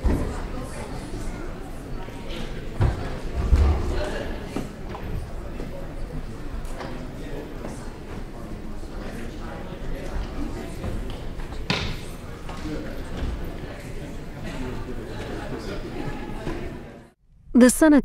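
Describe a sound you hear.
A crowd of people chatters and murmurs in a large room.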